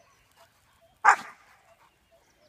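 A dog barks once nearby.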